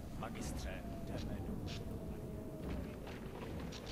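A magical portal hums and whooshes with a low rumble.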